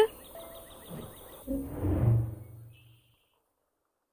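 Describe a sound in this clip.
A young girl speaks calmly up close.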